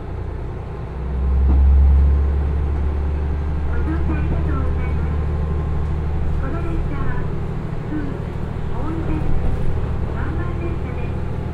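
A diesel train engine revs up and rumbles louder as the train pulls away.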